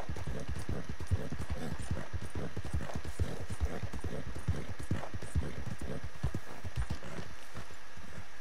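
A horse's hooves thud quickly on a dirt track.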